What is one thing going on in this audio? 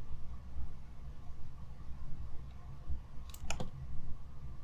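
A metal pistol magazine clicks as it is picked up.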